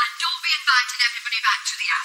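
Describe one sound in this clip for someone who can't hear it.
A middle-aged woman speaks.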